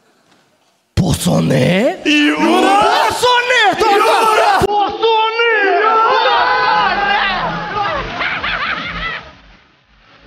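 An audience laughs and cheers in a large hall.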